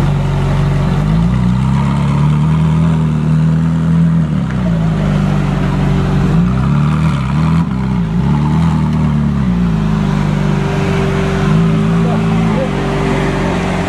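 A sports car engine revs up and down several times.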